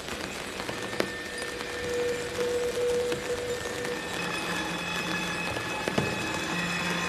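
Scattered clicks and knocks sound close by.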